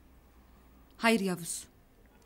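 A woman speaks tensely nearby.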